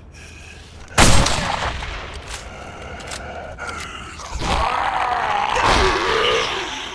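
A heavy weapon strikes a body with loud thuds.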